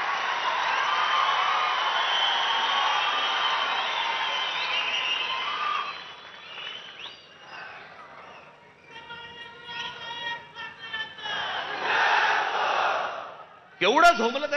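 A large crowd cheers and roars loudly outdoors.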